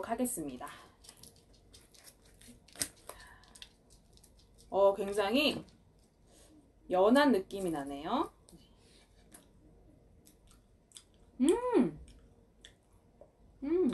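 Food crinkles and tears softly close by.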